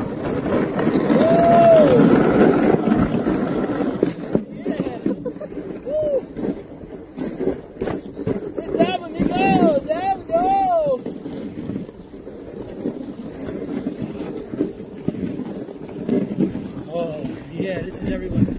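Sled dogs whine as they pull.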